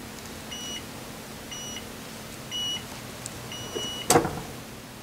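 A heat press timer beeps in short repeated bursts.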